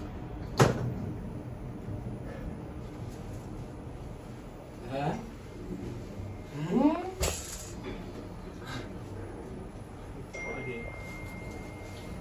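An elevator hums as it moves.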